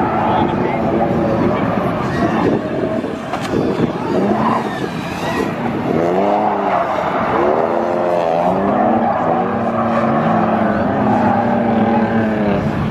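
Tyres screech and squeal on pavement.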